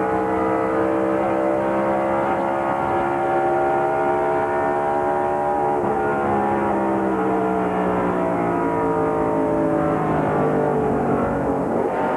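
Race car engines roar loudly and steadily at high speed, close by.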